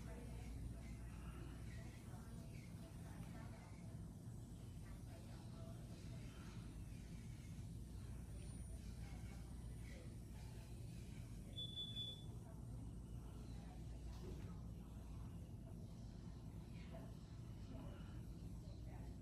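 A brush taps and scrapes softly against a jar and a fingernail.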